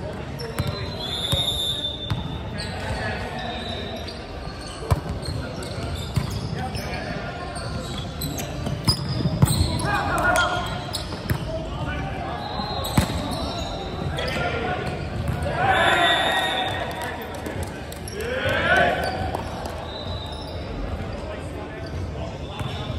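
Players shout and call out to one another across the court.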